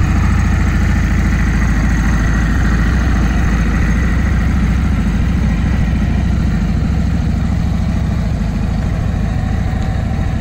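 A motorcycle engine idles with a deep, loud, steady rumble close by.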